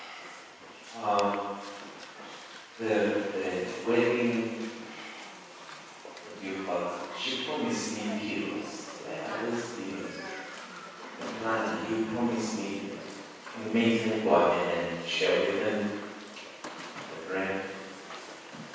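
A middle-aged man speaks loudly and with animation through a microphone and loudspeakers.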